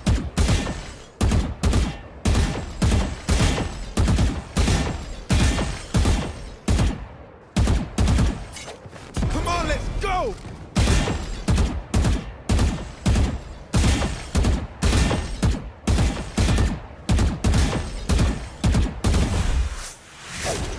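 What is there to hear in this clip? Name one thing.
Rapid gunshots fire in quick bursts, over and over.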